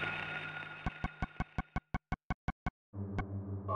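Menu selection clicks tick rapidly.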